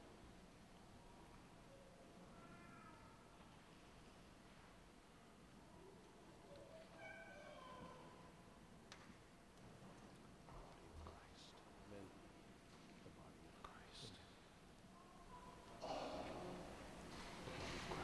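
An elderly man chants a prayer softly through a microphone in a large echoing hall.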